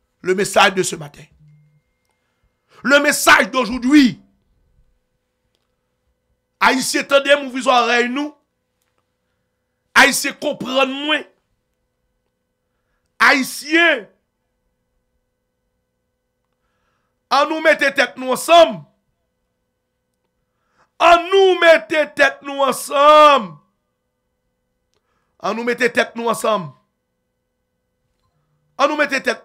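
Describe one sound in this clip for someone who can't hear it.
A man speaks close to a microphone in short bursts with long pauses.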